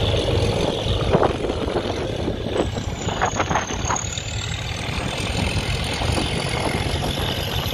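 Wind blows strongly outdoors, rumbling.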